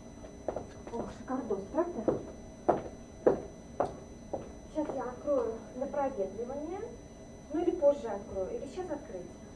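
A young woman speaks with animation at a short distance.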